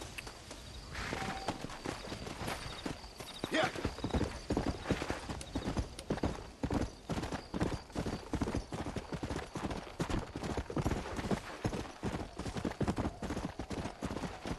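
Horse hooves gallop quickly over the ground.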